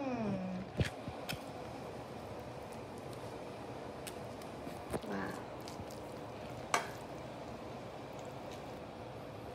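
A spoon scrapes and taps against a bowl.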